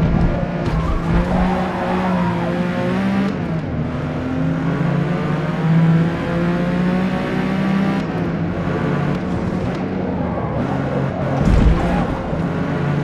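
A car engine roars steadily, rising and falling in pitch as gears change.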